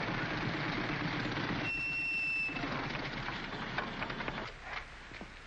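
Motorcycle engines and a car engine rumble past on a road.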